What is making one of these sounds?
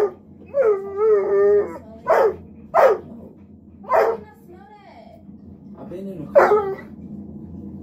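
A dog howls and whines in short bursts.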